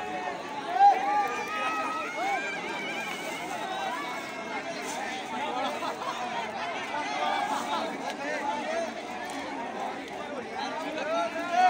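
A crowd of men chatter and shout outdoors.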